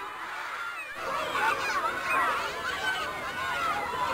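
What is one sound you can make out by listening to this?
A group of girls chatter and sing outdoors.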